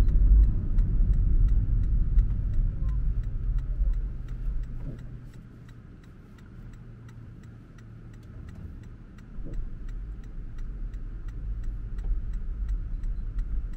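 A car's turn signal ticks steadily.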